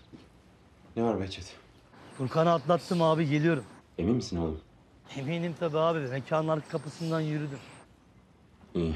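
A man talks on a phone in a calm voice.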